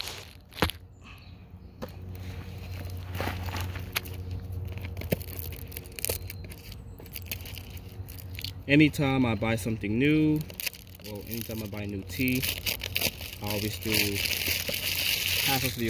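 A small wood campfire crackles and pops.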